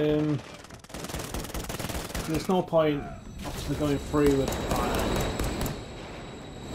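A pistol fires sharp shots that echo through a large hall.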